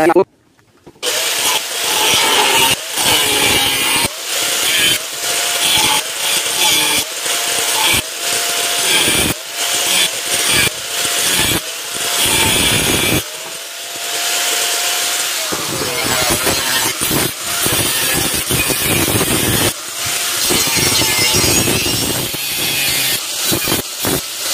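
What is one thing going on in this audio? An angle grinder whines and screeches as it cuts through metal.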